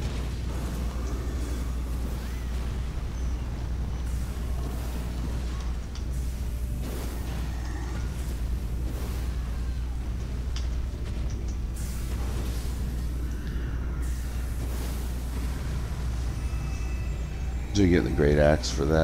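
A sword slashes through the air with magical whooshes.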